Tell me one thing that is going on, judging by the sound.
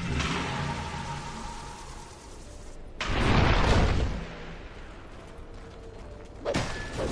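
Magic spells whoosh and burst in a fight.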